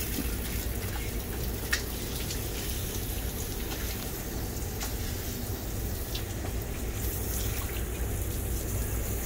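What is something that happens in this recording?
Water sprays steadily from a shower head.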